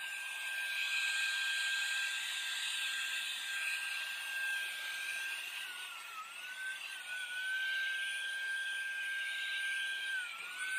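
An electric spray gun hums and hisses steadily as it sprays paint.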